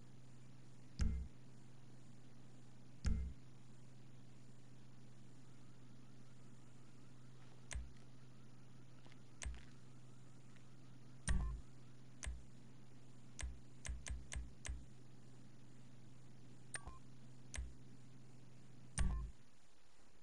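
Short menu clicks and thumps sound as options are picked.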